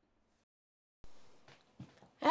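A woman speaks softly close by.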